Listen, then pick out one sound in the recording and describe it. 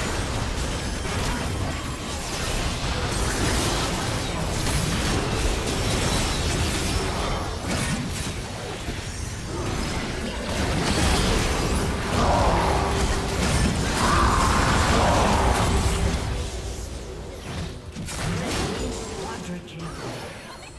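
Fantasy battle effects of blades and spells clash and crash.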